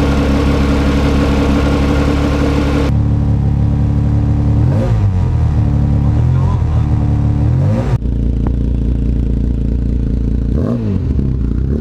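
A small car engine idles with a loud, throaty rumble.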